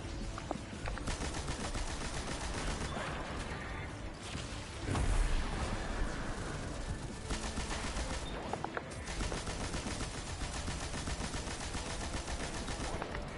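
A gun fires in rapid, rattling bursts.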